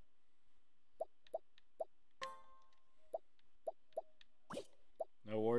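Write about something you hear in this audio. Short menu blips sound in quick succession.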